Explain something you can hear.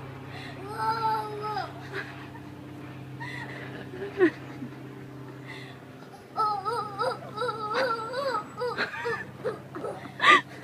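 A toddler babbles in a high voice close by.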